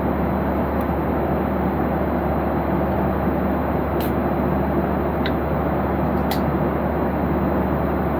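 A jet airliner's engines roar steadily in the cabin.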